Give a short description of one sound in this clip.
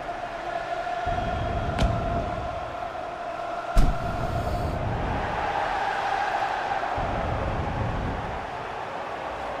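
Flame cannons whoosh in short bursts.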